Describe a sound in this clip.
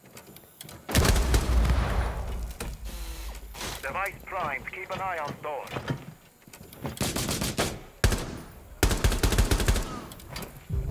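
Rapid gunshots fire in short bursts.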